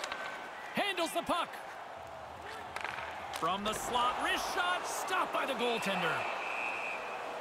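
Hockey sticks click against a puck on ice.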